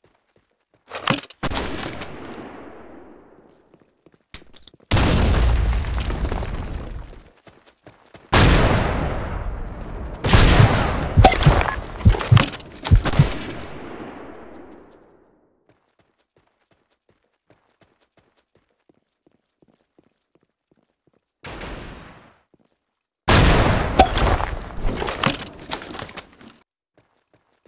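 Gunshots fire in rapid bursts and echo.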